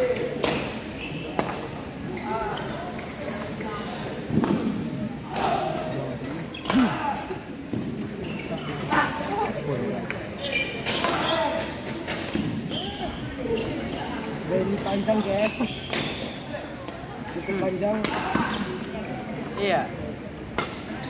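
A shuttlecock is struck sharply back and forth with rackets in a large echoing hall.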